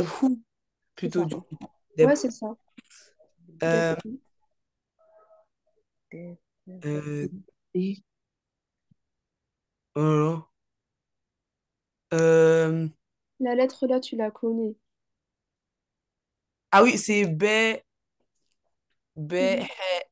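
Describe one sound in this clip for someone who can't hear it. A young woman speaks calmly and clearly over an online call, pausing between words.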